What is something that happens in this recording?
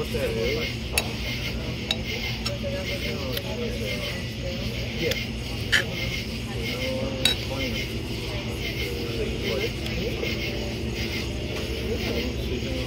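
A spoon scrapes and clinks against a pan.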